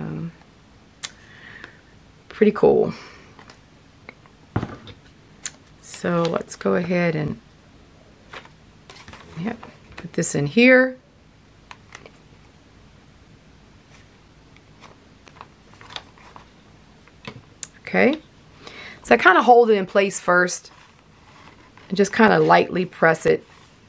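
Stiff paper rustles and flaps softly as pages are turned and pressed.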